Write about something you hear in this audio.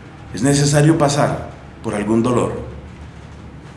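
A man speaks calmly close to the microphone.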